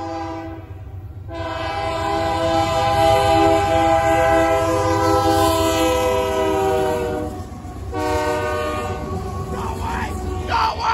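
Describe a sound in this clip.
A train horn blares loudly in long blasts.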